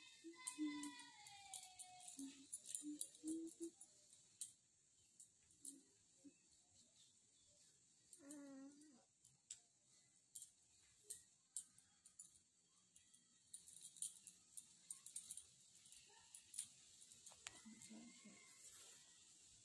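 A woman talks softly close by.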